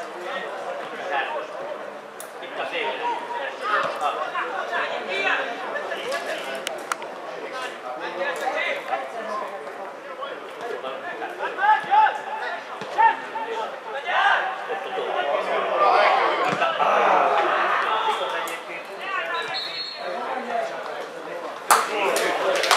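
Men shout and call out across an open outdoor field.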